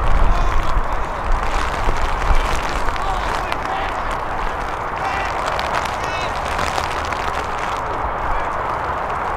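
Wind blows hard across an open field.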